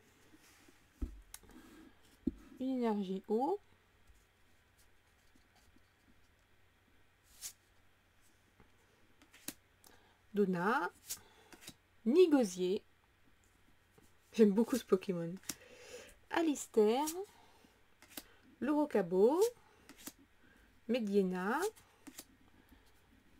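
Playing cards rustle and slide as hands shuffle through them.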